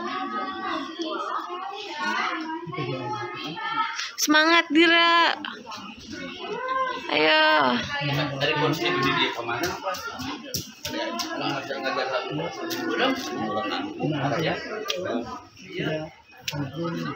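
Young children talk and call out nearby.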